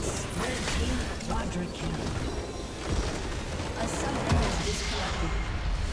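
Game spells crash and explode in a fight.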